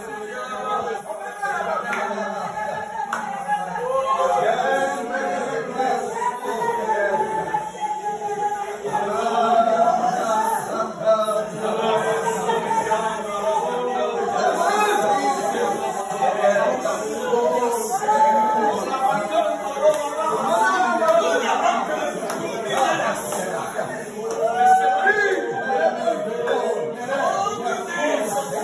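Several men and women pray aloud at once with fervour, their voices overlapping.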